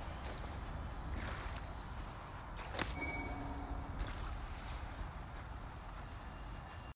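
Footsteps scuff on damp ground.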